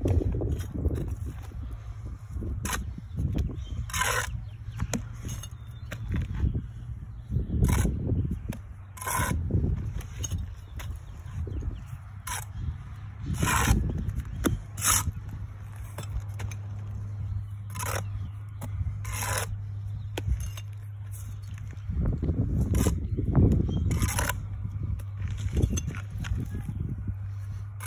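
A metal trowel scrapes and taps against bricks and mortar.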